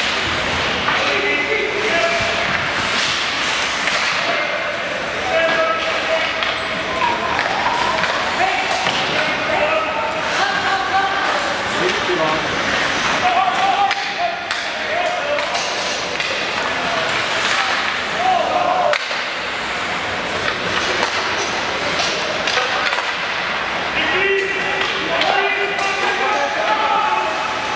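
Skates scrape and hiss across ice in a large echoing arena.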